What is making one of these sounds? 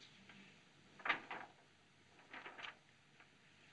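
Papers rustle as they are handled.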